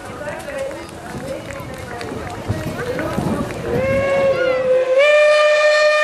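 A steam locomotive chuffs as it pulls away.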